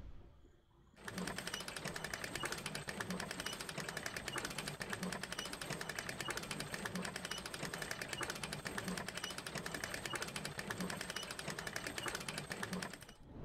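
A winch handle turns with a rapid, steady ratcheting clatter.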